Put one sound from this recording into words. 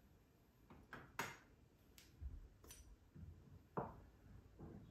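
Glass bottles clink and knock together.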